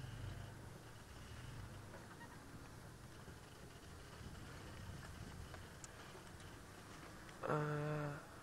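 A vehicle engine idles with a low rumble, then quiets.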